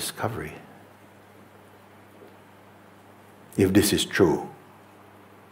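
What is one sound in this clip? An older man speaks calmly and slowly into a close microphone, with long pauses.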